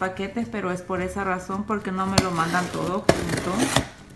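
A blade slices through packing tape on a cardboard box.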